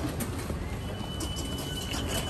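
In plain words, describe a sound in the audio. A ticket gate beeps.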